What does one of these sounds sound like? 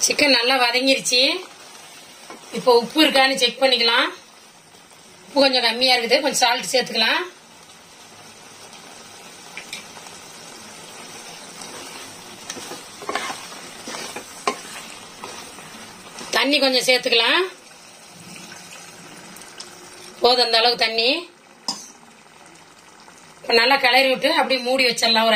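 A wooden spatula scrapes and stirs a sauce in a pot.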